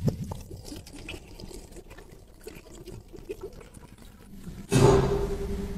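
Liquid pours and splashes into a metal tray.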